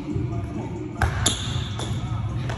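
A heavy ball slaps into a person's hands as it is caught.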